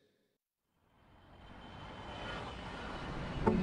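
A jet airliner roars overhead.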